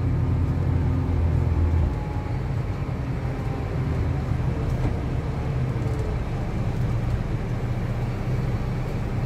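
A bus engine drones steadily with a low rumble while driving.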